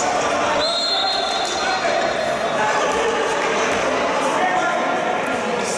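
A crowd of spectators shouts and cheers in an echoing sports hall.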